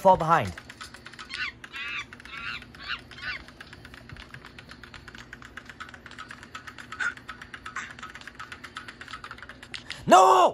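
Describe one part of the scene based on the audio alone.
A mobile game's sounds play through a small phone speaker.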